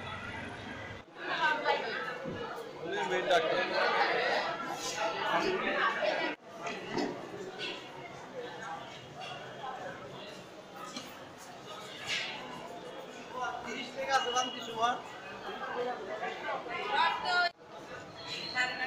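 A crowd of men and women murmurs and chatters in a large echoing hall.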